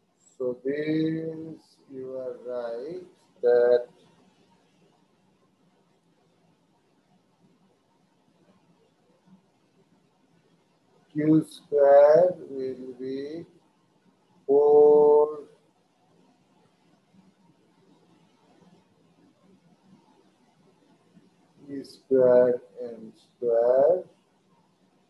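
A man speaks calmly through an online call microphone, in short phrases with pauses.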